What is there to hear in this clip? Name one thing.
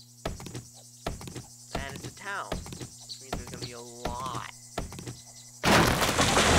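A stone axe chops into a tree trunk with sharp knocks.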